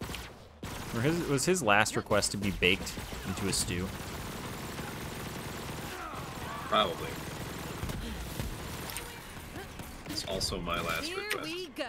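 Laser beams crackle and hiss.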